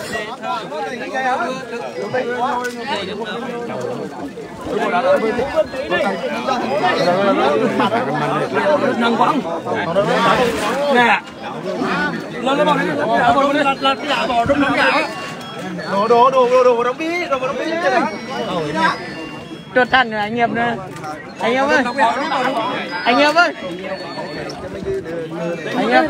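A crowd of men talk and call out over one another nearby, outdoors.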